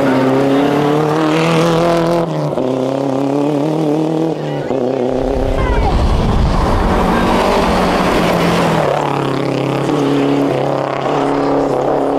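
A rally car engine roars at high revs as the car speeds past.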